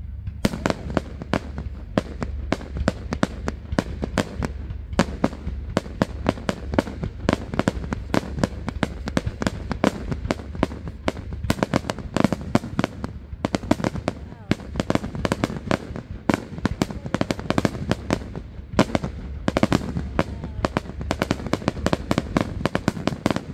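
Fireworks burst and crackle in rapid bangs outdoors.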